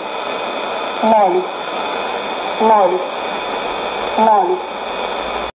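A radio plays a short falling chime melody that repeats at even intervals.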